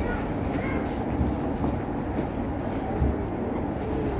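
Pages of a book turn.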